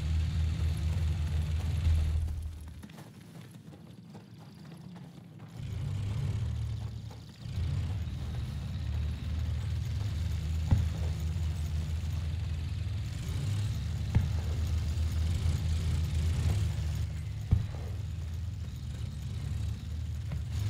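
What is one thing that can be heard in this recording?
Heavy vehicle engines rumble low and steadily.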